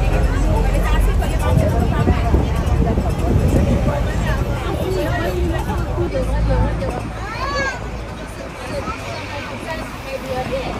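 City traffic rumbles steadily along a busy street.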